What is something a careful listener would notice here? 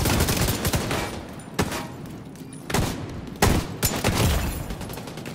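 Gunfire rattles in loud, rapid bursts.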